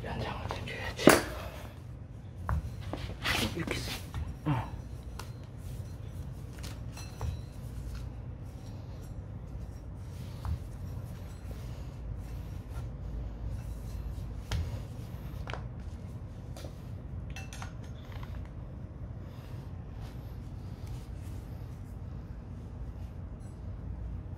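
Metal parts clink and scrape as they are handled on a concrete floor.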